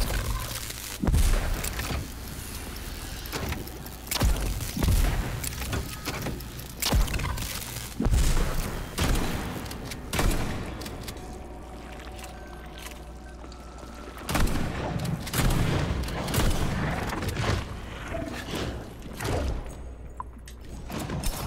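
A man speaks into a headset microphone with animation.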